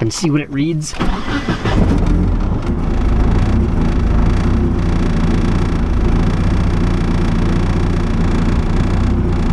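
A car engine roars steadily under load.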